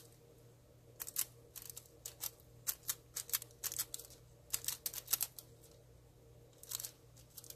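Thin foil crinkles softly as fingers press it down.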